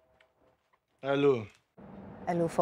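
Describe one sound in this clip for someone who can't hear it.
A man speaks into a phone.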